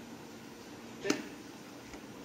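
A plastic plug clicks into a socket.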